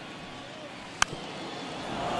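A ball smacks into a catcher's mitt.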